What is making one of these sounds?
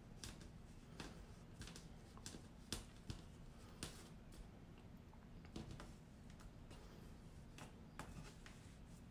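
Sequined yarn rustles and clicks softly as hands handle it.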